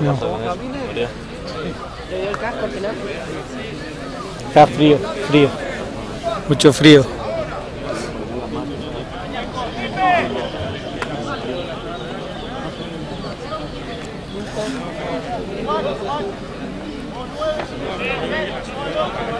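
Several men shout and call out to each other outdoors.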